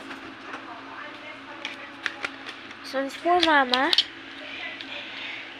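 Plastic phone stands click and clatter as hands handle them.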